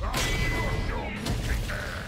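Metal weapons clash with sharp strikes.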